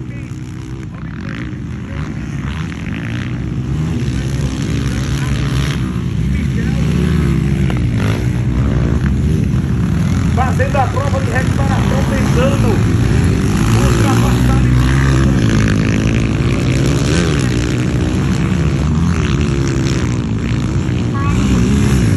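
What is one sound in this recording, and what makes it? A dirt bike engine revs up and down nearby, rising and falling as it rides over bumps.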